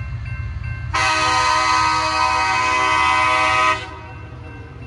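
A train horn blares loudly nearby.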